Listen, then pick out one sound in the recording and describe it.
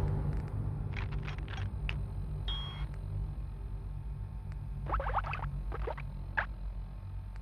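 Short electronic blips sound as a game menu selection moves.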